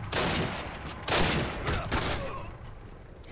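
Gunshots crack in loud, rapid bursts.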